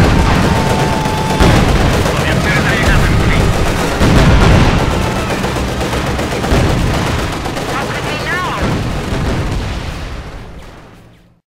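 Gunfire rattles steadily.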